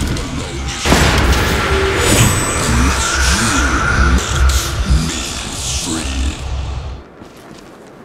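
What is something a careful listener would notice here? A magical energy blast crackles and whooshes.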